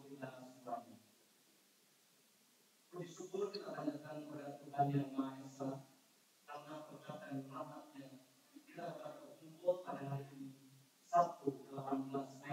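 A man speaks calmly into a microphone over a loudspeaker in an echoing hall.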